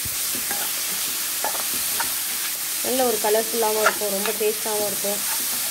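A spatula scrapes and clatters against a pan.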